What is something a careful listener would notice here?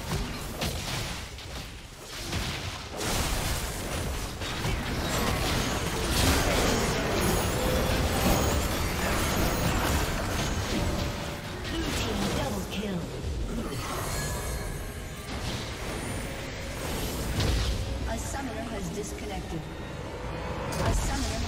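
Spell effects and attack sounds from a video game crackle and burst.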